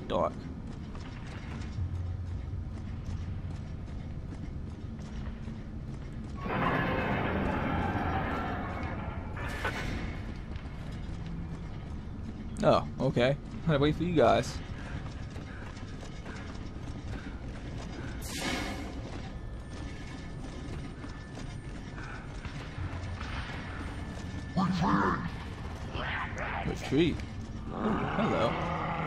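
Heavy armored footsteps tread on a hard floor.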